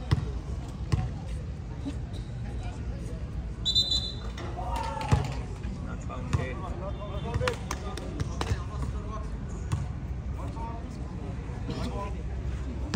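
A crowd of spectators chatters and calls out nearby.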